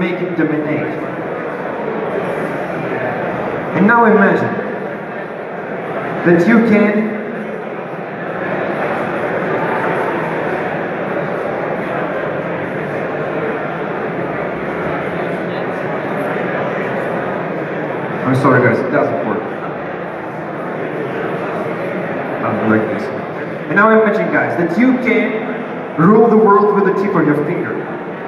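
A young man speaks into a microphone over loudspeakers in a large echoing hall.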